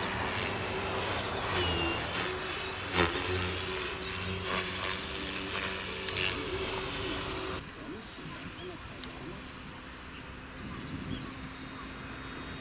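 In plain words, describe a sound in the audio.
A model plane's motor buzzes overhead, rising and falling in pitch.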